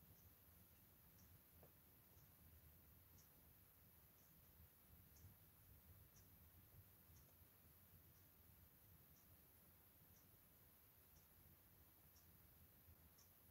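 A small brush dabs softly on a vinyl surface.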